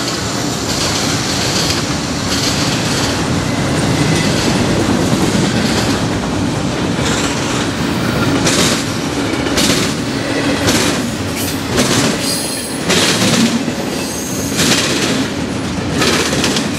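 Wheels squeal and click on the rail joints.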